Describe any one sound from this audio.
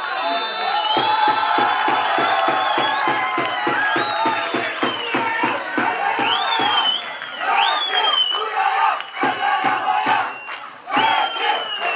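A crowd of spectators claps in unison outdoors.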